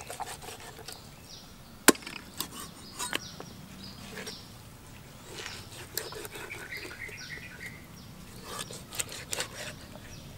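A knife slices through raw meat with soft wet sounds.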